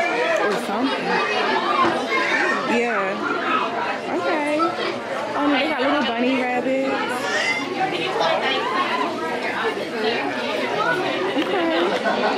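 A crowd of adults and children chatter nearby.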